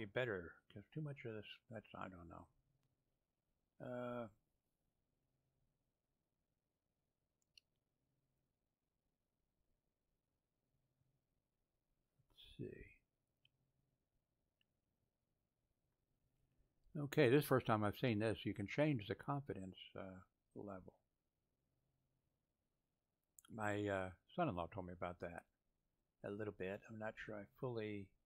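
An elderly man speaks calmly into a microphone, with pauses.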